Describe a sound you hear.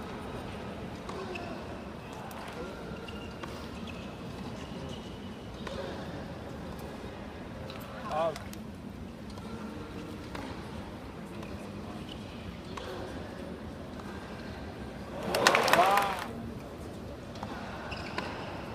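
A tennis ball is struck with faint, distant pops.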